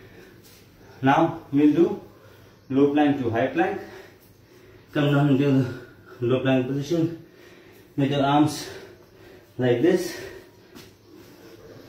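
A man speaks calmly and clearly close by, in short phrases with pauses.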